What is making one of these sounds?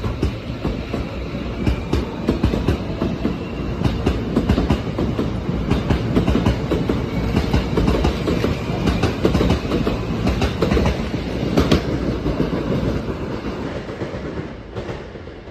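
A train rumbles and clatters as it pulls away close by.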